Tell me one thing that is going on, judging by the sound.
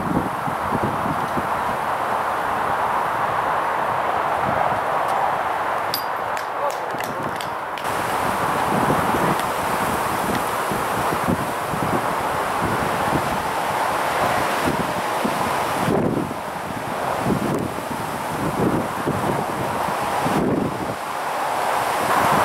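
Strong wind gusts outdoors and buffets the microphone.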